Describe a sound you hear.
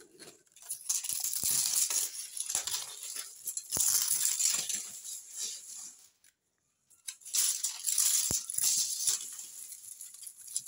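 Dry leaves rustle and crackle as a hand brushes through them.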